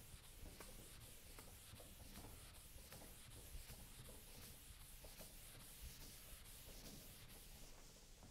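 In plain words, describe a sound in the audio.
A felt eraser rubs rhythmically across a chalkboard.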